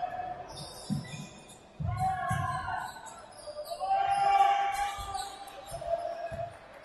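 A basketball bounces with dull thumps on the floor.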